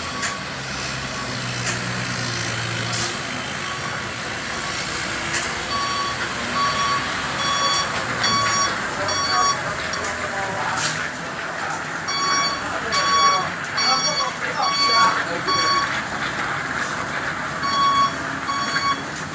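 A diesel heavy cargo truck engine rumbles as the truck turns slowly.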